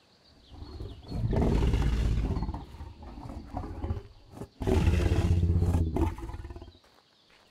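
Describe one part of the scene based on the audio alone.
A large creature roars loudly.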